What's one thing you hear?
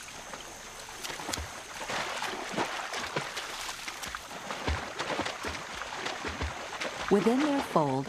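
Water splashes as animals run through a marsh.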